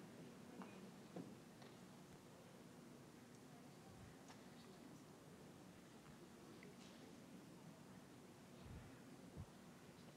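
An elderly man reads aloud quietly through a microphone.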